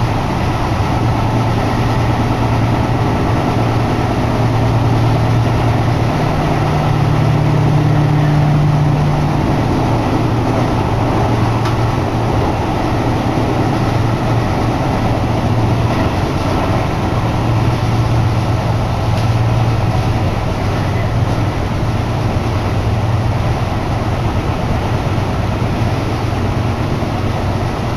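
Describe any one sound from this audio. Wind rushes loudly through an open window.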